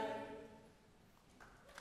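A large children's choir sings a final held chord that fades away.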